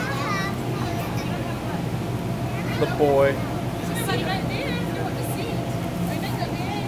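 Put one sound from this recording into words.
Children chatter and shout nearby.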